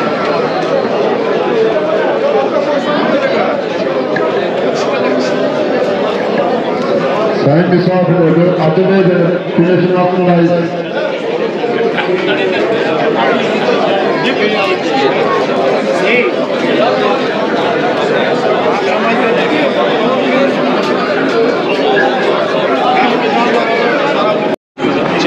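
A large crowd of men murmurs and chatters outdoors.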